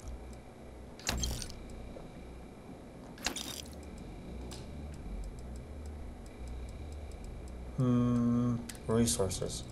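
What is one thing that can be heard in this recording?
Game menu sounds click and swish as items are browsed and sold.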